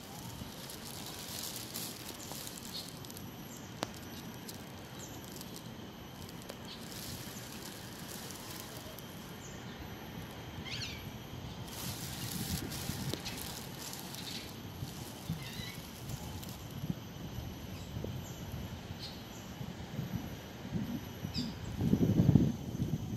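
A small animal splashes softly while swimming.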